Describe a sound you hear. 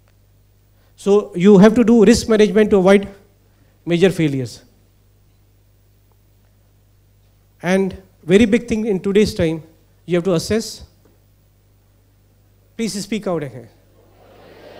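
A man speaks through a microphone in a large hall, pausing between phrases.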